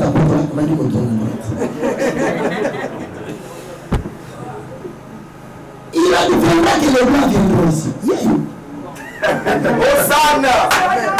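A man shouts passionately into a close microphone.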